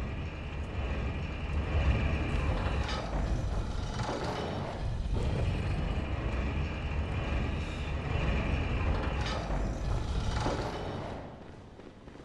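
Heavy footsteps thud on stone in a large echoing hall.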